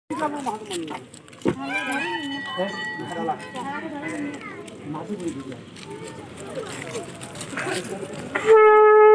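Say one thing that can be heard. Several men and women talk nearby outdoors.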